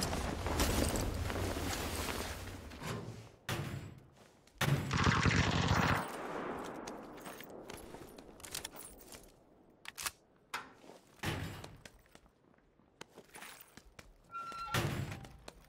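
Footsteps run on hard ground in a video game.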